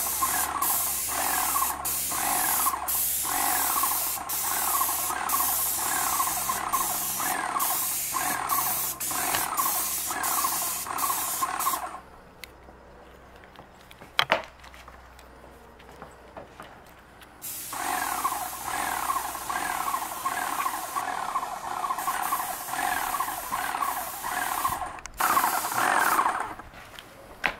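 A paint sprayer hisses and whines with a fast, pulsing rhythm.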